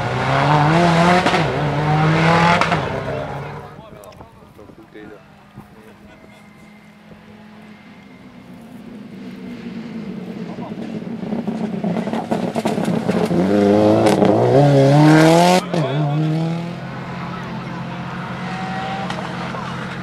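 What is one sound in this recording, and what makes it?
A rally car engine roars loudly at high revs, changing gear as it speeds past.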